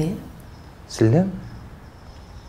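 A woman exclaims in surprise, as a short question.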